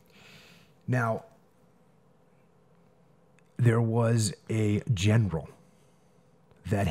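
A man speaks calmly and deeply into a close microphone.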